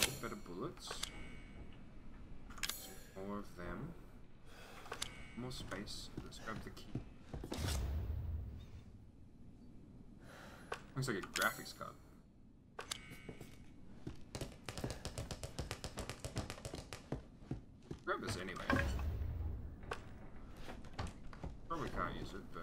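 Footsteps creak on wooden floorboards.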